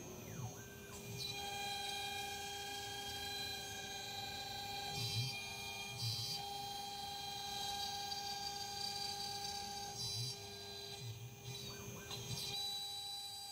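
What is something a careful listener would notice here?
A router spindle whines steadily at high speed.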